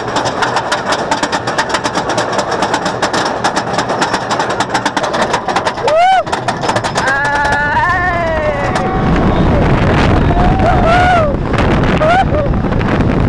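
A roller coaster rattles and clatters fast along a wooden track.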